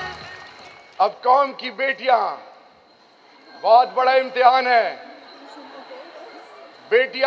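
A young man speaks forcefully into a microphone, heard through loudspeakers in a large echoing hall.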